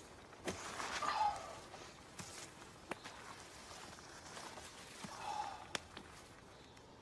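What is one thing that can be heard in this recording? A sleeping bag rustles and crinkles as a man settles into it.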